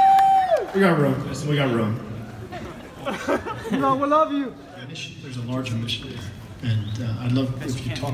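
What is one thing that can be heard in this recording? A man speaks calmly through a microphone over loudspeakers.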